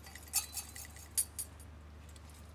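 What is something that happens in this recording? A censer's metal chains clink as it swings.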